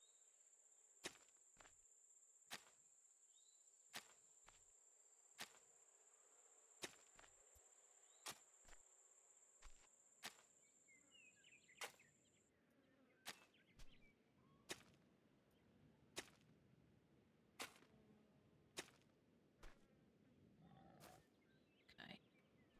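A hoe chops rhythmically into soft earth.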